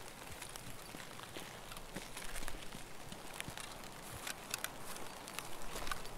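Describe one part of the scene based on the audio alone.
Footsteps shuffle through rustling undergrowth outdoors.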